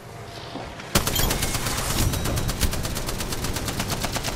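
Triumphant victory music swells and plays on.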